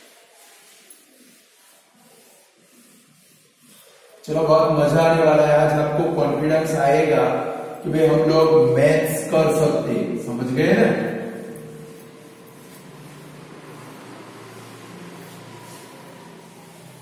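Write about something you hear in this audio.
A duster rubs against a whiteboard.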